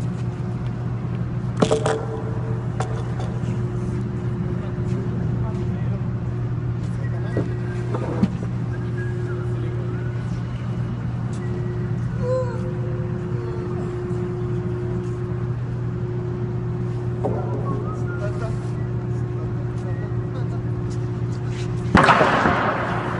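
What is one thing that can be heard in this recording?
Wooden planks knock and clatter as they are dropped and dragged.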